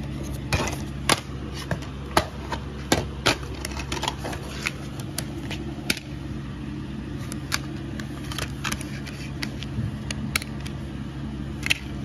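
A plastic case clicks and rattles as hands handle it.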